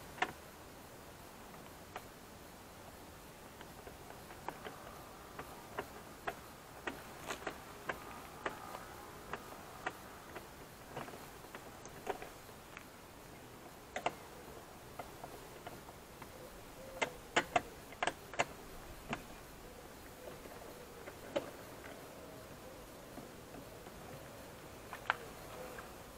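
Plastic clicks and taps on a car door panel.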